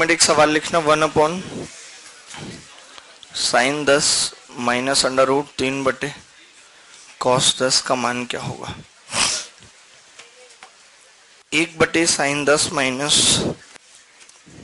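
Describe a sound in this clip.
A man explains calmly, close by.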